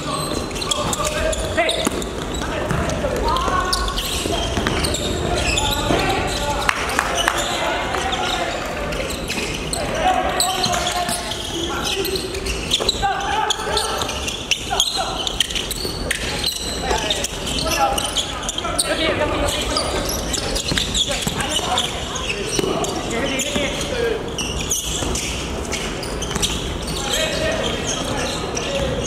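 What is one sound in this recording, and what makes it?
Basketball shoes squeak sharply on a wooden court, echoing in a large hall.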